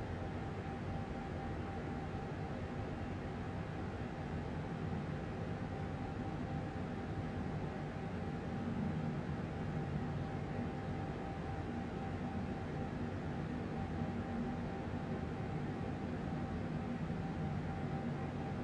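A jet engine roars steadily with a constant high whine.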